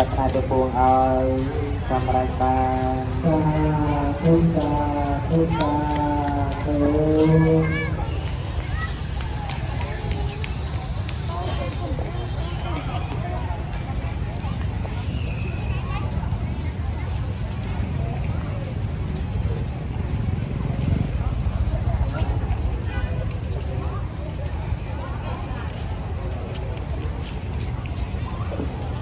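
People chatter softly in the distance outdoors.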